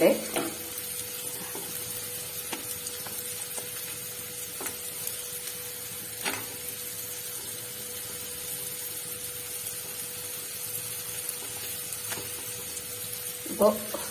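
A hand rustles flatbreads in a metal bowl.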